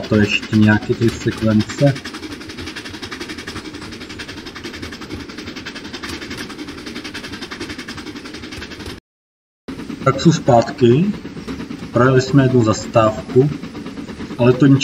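A steam locomotive chugs steadily along a track.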